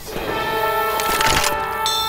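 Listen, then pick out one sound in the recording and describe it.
A rifle is reloaded with metallic clicks.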